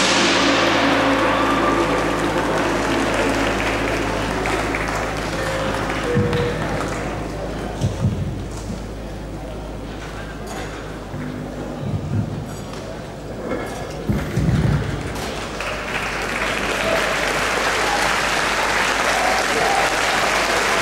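Drums boom loudly in a large echoing hall.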